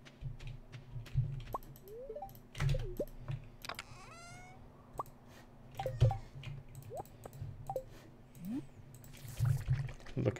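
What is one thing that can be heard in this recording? Soft game clicks and chimes sound as items are picked in a menu.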